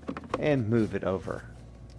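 A phone is set down with a soft knock.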